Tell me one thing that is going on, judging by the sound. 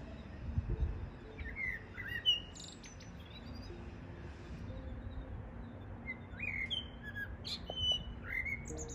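A bird perched nearby calls out with short, rising whistles.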